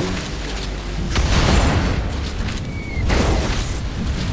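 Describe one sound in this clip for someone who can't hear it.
Electric blasts crackle and boom.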